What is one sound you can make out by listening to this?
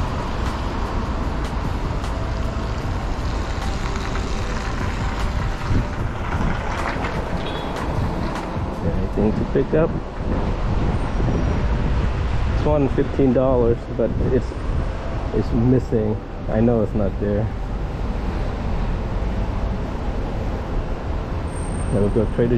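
Wind gusts outdoors, rumbling steadily.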